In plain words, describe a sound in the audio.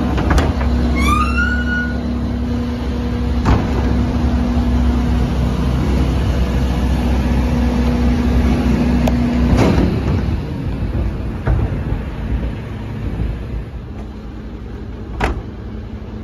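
Plastic wheels of a wheelie bin rumble over pavement.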